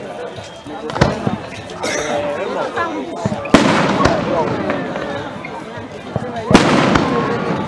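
Fireworks burst with loud booms.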